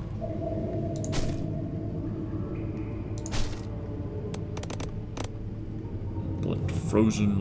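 Short interface clicks sound as menu items are selected.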